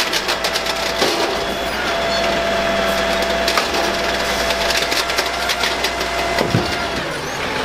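A plastic bin bangs and rattles as it is emptied and set down.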